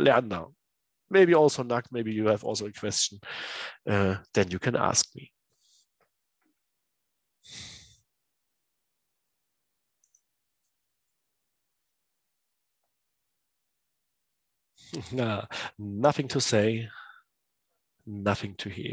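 A man speaks calmly into a microphone, heard as if over an online call.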